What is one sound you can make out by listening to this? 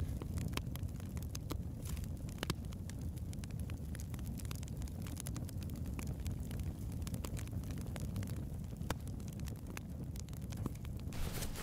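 A fire crackles and pops close by.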